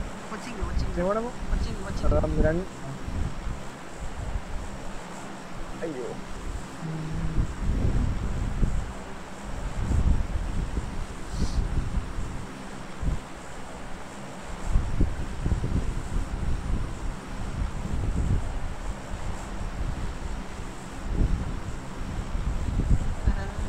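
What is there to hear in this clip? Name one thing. A propeller plane's engines drone steadily.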